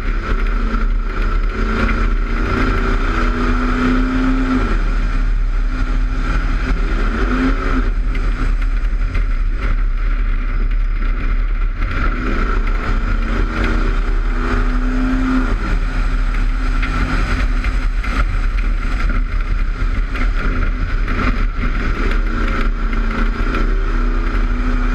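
A race car engine roars loudly up close, rising and falling in pitch through the laps.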